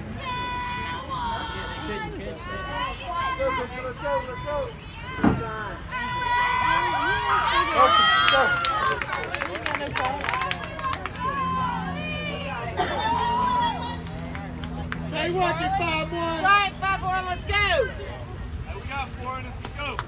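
Young women chant and cheer from a distance outdoors.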